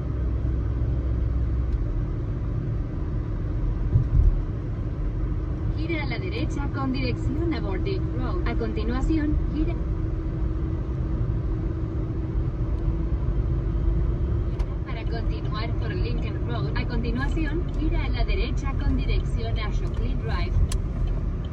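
A car drives along a road with a steady low rumble of engine and tyres.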